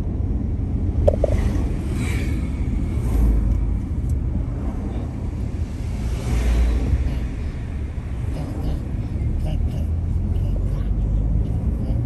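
A car engine hums steadily from inside while driving along a road.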